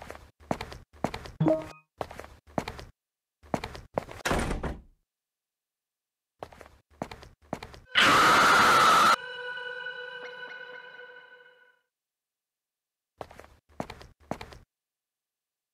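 Footsteps thud across a wooden floor.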